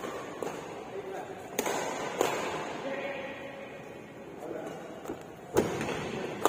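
Rackets strike a shuttlecock with sharp pops in an echoing hall.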